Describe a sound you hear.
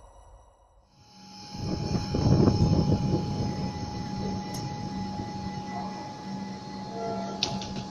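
A train's engine hums steadily.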